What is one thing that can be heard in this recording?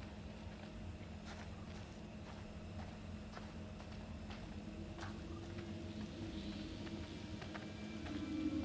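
Footsteps crunch slowly on wet ground.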